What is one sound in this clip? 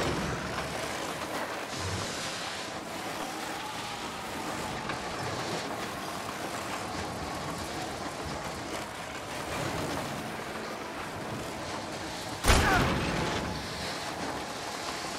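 Wind rushes steadily past.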